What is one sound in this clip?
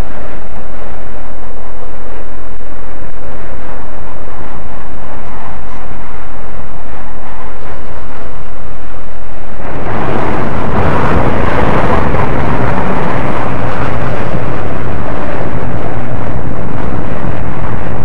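Jet engines roar steadily, swelling much louder partway through.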